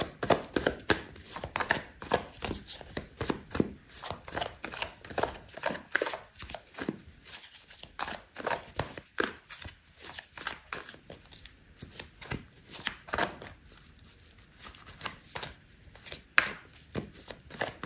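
Playing cards shuffle and riffle with quick flicks.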